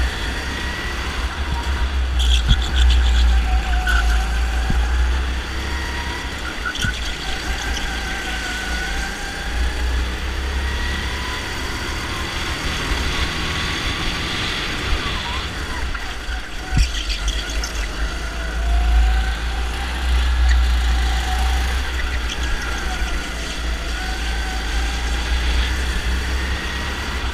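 A kart engine buzzes loudly up close, its pitch rising and falling with the throttle.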